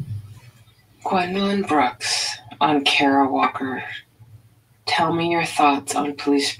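A woman reads out calmly over an online call.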